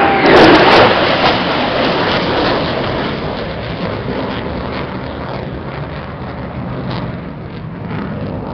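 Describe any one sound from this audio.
Wind gusts loudly outdoors.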